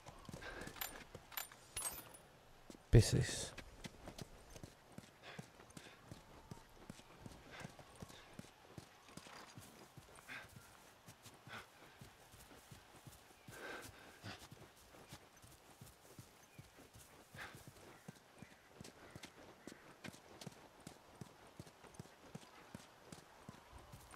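Footsteps walk steadily over hard ground.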